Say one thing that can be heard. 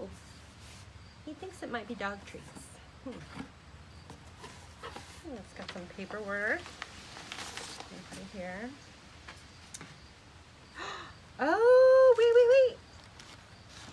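Cardboard and paper rustle as a box is opened.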